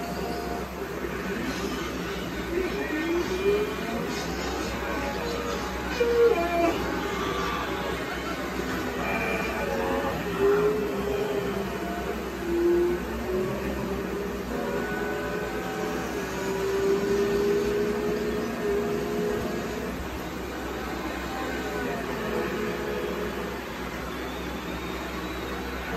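Racing car engines roar and whine through a loudspeaker, rising and falling in pitch.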